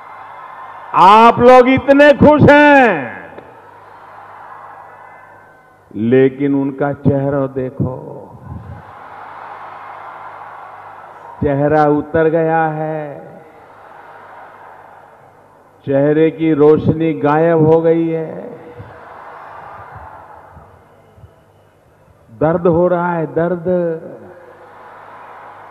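An elderly man speaks forcefully into a microphone over loudspeakers, in short loud bursts.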